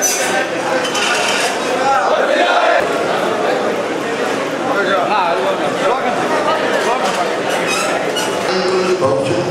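A crowd of men cheers and chants loudly.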